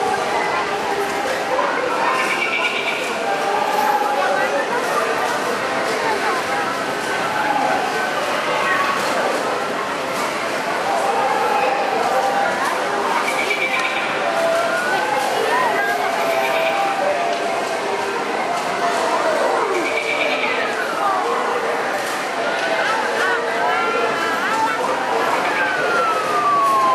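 Arcade machines play bright electronic jingles and beeps throughout.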